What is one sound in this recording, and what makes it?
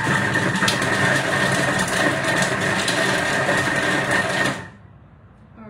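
A food processor whirs loudly and then stops.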